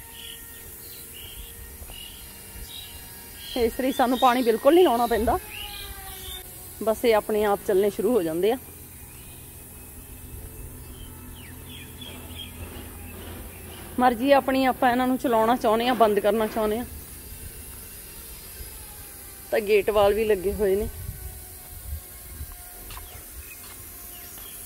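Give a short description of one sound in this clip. Lawn sprinklers hiss as they spray water over grass.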